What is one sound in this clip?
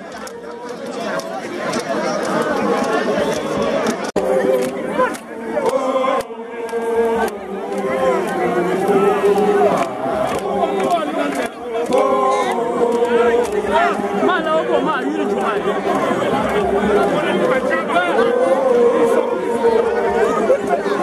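A large outdoor crowd sings and chants together loudly.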